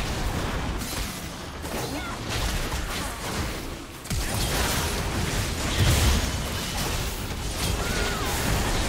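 Game spells whoosh and crackle during a fight.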